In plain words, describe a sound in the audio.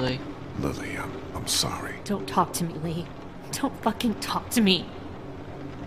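A woman speaks in a tearful, upset voice.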